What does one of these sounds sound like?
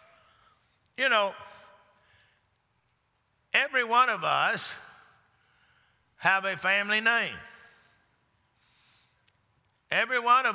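An older man speaks forcefully in short bursts through a microphone, his voice echoing in a large hall.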